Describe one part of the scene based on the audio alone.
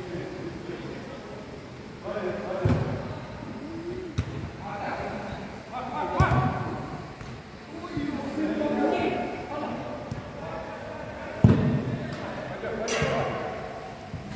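Young men shout and call to each other across a large echoing hall.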